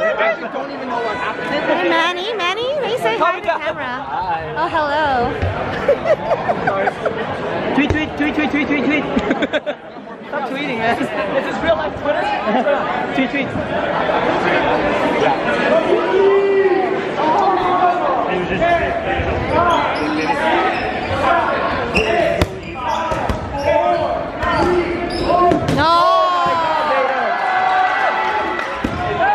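A crowd chatters and cheers loudly in a large echoing gym.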